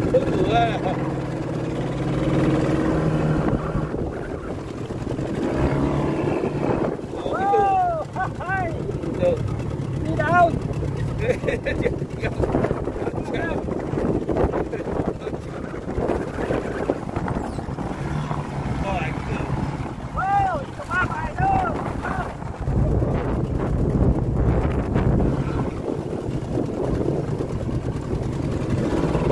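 Water laps against the side of a boat.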